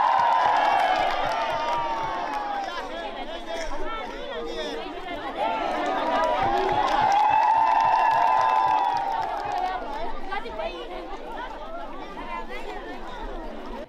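A large crowd outdoors sings and chants loudly together.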